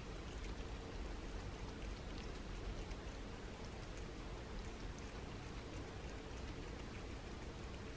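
A cat licks and laps food from a paper plate up close.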